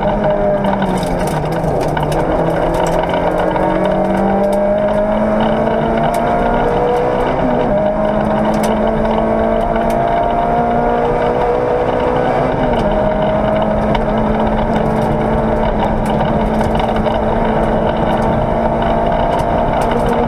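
A man reads out pace notes over an intercom.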